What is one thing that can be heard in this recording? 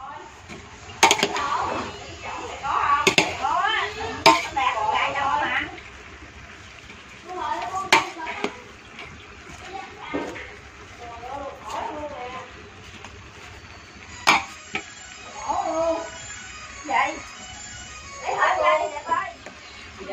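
A metal spatula scrapes and clanks in a pot of shredded vegetables.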